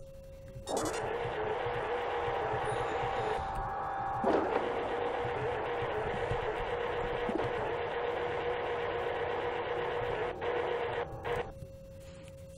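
A low electronic hum with static drones steadily, then cuts off.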